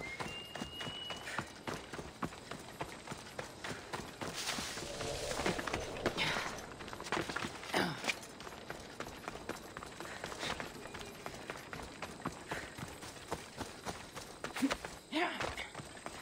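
Footsteps crunch steadily over dirt and grass.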